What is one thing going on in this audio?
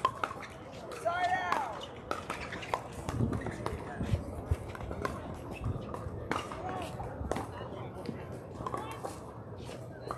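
People talk and call out in the distance.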